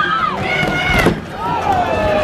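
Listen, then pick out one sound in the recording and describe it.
A skater falls and thuds onto the floor.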